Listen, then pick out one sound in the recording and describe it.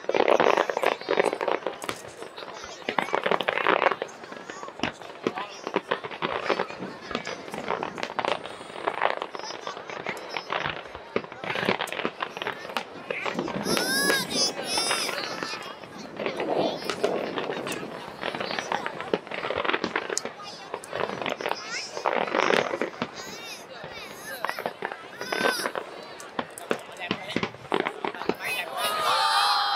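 Fireworks bang and crackle in rapid bursts outdoors.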